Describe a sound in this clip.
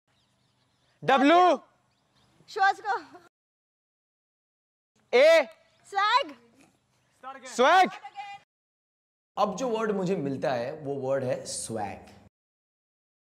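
A young man shouts excitedly outdoors.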